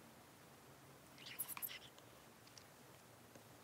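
A makeup brush brushes softly across skin.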